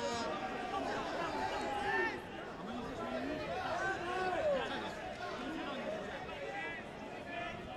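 A stadium crowd murmurs in the background.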